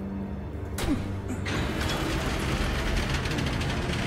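Heavy metal doors are forced open with a scrape.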